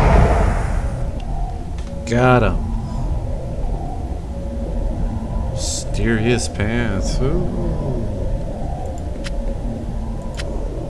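A magical portal hums steadily.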